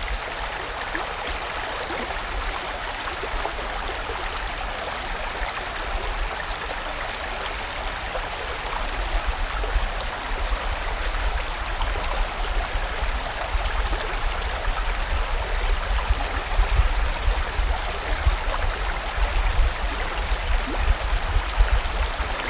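A stream rushes and gurgles steadily over rocks.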